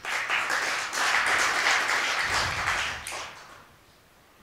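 An audience applauds loudly, then the clapping dies away.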